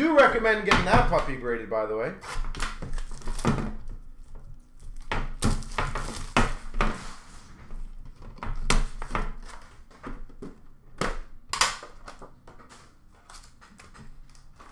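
Plastic wrappers and cardboard boxes rustle and knock as hands handle them.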